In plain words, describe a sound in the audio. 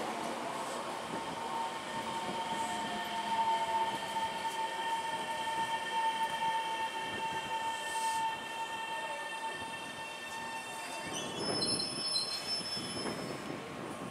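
An electric train rolls slowly along the track with a rising whine.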